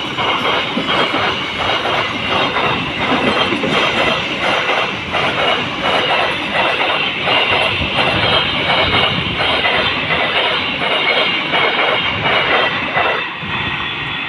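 A freight train rumbles past close by, wheels clattering rhythmically over the rail joints.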